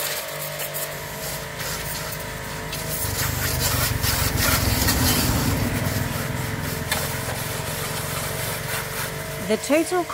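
A pressure washer sprays water hard against a motorbike.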